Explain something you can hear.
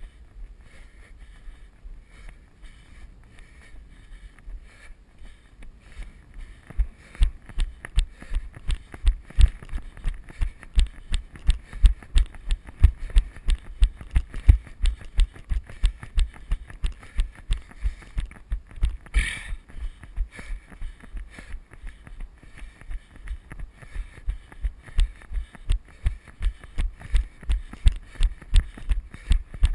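A bicycle rattles and thumps in a quick, steady rhythm over a bumpy dirt trail.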